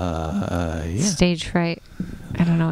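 A woman speaks cheerfully through a microphone.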